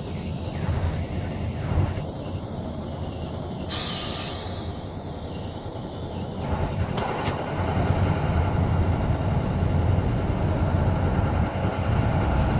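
The diesel engine of a four-wheeled armoured vehicle rumbles as it rolls slowly.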